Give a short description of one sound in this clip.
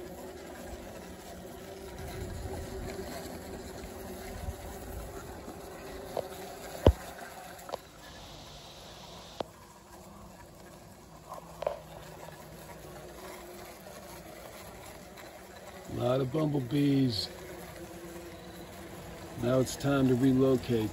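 Bees buzz and hum inside a plastic bottle.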